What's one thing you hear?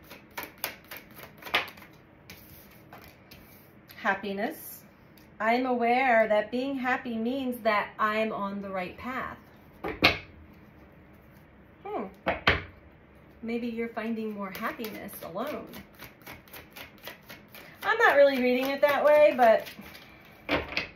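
Playing cards shuffle and riffle in a woman's hands.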